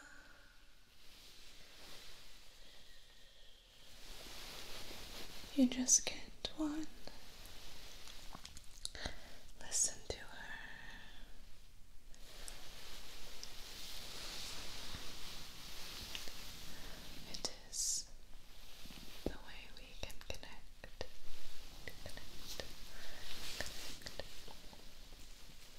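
A young woman whispers softly, very close to a microphone.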